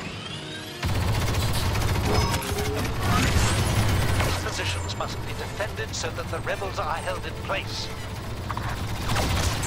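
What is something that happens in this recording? Blaster rifles fire in rapid bursts of laser shots.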